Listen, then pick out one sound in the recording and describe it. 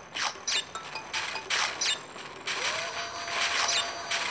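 A short bright chime rings as a fruit is picked up.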